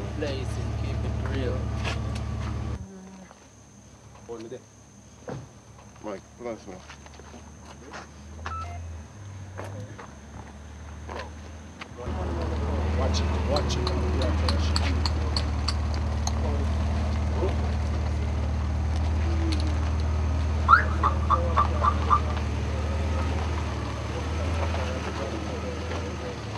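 A car engine idles close by with a low rumble.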